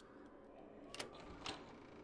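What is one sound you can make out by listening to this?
A metal door latch clicks.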